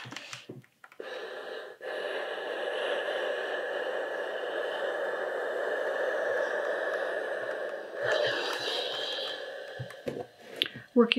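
A steam iron hisses steadily.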